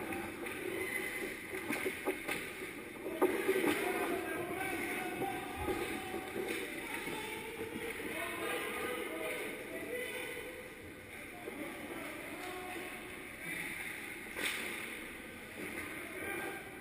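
Skate blades scrape and hiss across ice.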